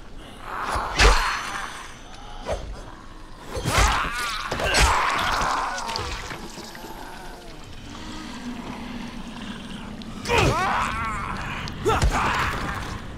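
Heavy blows thud into a body.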